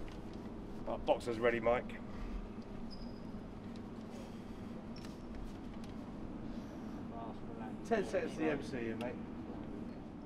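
A young man speaks briefly nearby.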